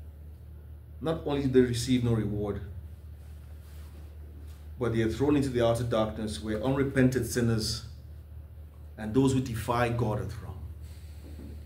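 A man speaks calmly and expressively, close by.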